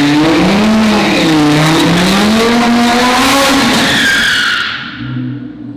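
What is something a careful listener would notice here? A sports car engine revs loudly.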